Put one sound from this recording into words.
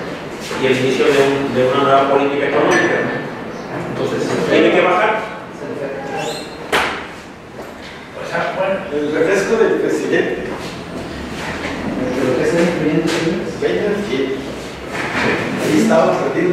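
A man speaks steadily to a group, close by.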